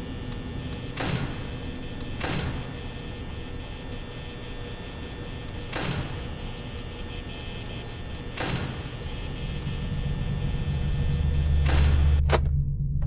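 A button clicks several times.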